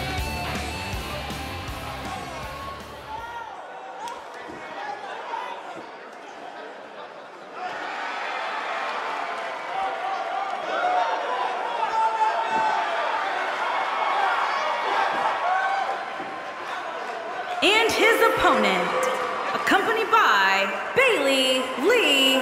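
A large crowd cheers and applauds in a big arena.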